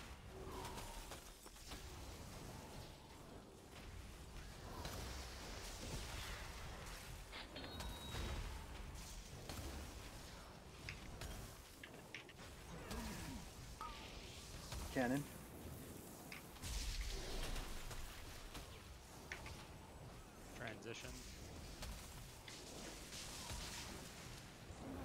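Magic spells whoosh and crackle amid battle sounds.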